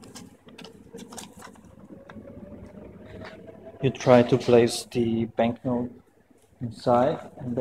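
Paper banknotes rustle.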